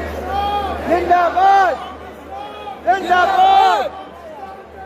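A man sings loudly nearby.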